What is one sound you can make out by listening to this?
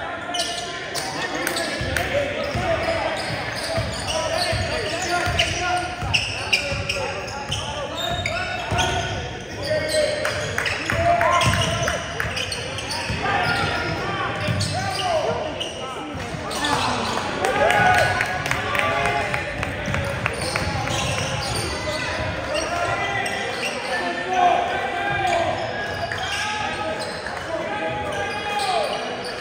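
A basketball bounces on a court, echoing in a large gym.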